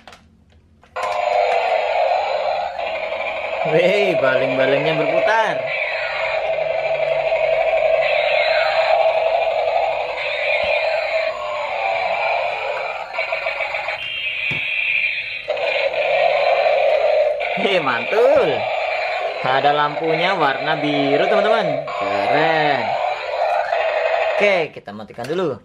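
A toy helicopter plays a loud, bright electronic tune with warbling siren sounds.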